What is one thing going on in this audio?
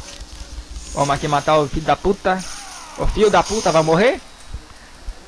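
Men grunt and yell while fighting.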